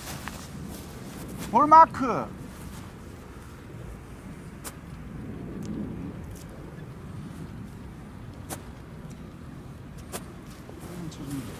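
A golf club swishes through the air and brushes the grass in short practice swings.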